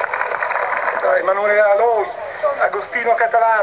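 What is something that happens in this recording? A man speaks into a microphone, heard through loudspeakers.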